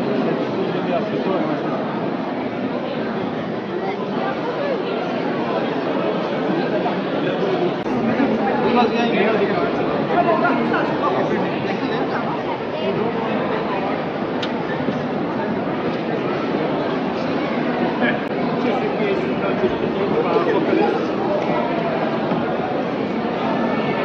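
A large crowd murmurs and chatters all around in an echoing hall.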